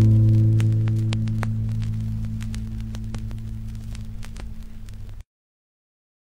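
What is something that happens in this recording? A record player hums low and steadily, slowly fading.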